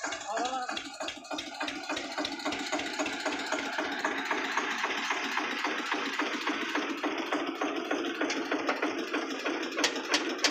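A tractor engine idles with a steady, rapid chugging.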